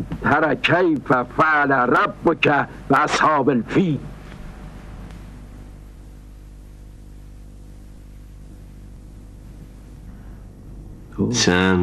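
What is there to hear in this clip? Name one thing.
An elderly man speaks earnestly and with animation, close by.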